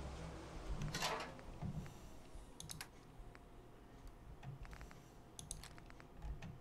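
Short soft interface clicks tick as a menu is scrolled.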